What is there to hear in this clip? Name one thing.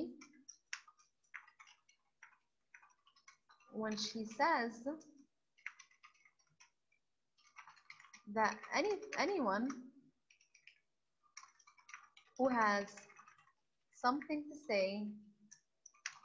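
Keys clack on a computer keyboard as someone types in short bursts.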